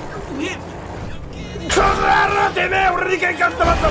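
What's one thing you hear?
A car slams into a man with a heavy thump.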